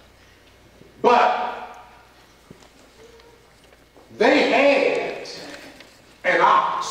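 An older man preaches loudly and with animation in a large echoing hall.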